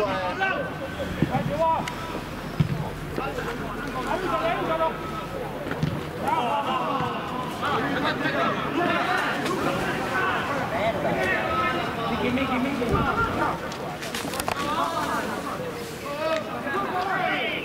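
Men shout and call out across an open field.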